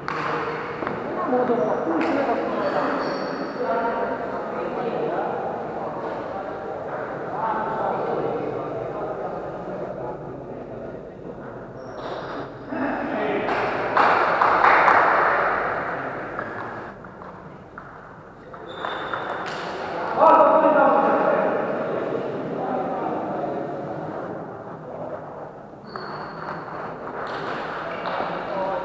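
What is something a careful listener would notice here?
Men talk and call out in the background.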